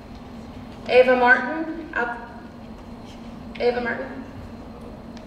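A man announces over a loudspeaker in a large echoing hall.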